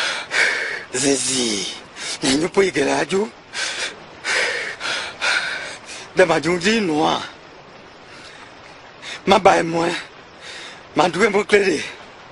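A man speaks in a low, calm voice close by.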